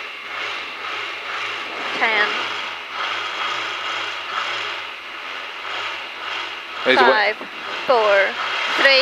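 A rally car engine idles, heard from inside the car.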